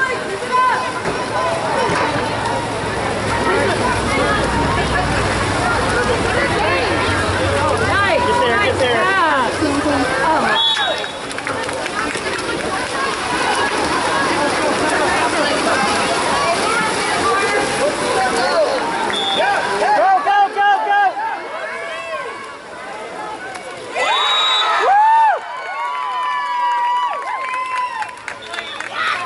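Swimmers splash and thrash through water.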